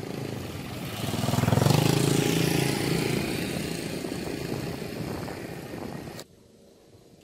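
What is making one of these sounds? A motorbike engine hums as it passes by.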